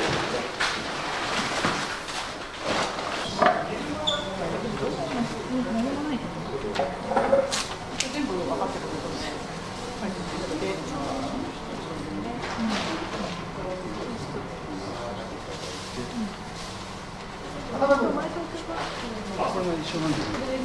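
Several adults talk quietly nearby.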